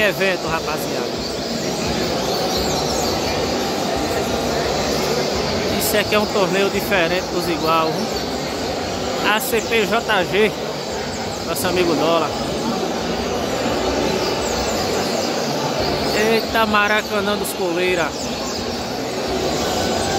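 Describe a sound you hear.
A crowd of men murmurs and talks in the background.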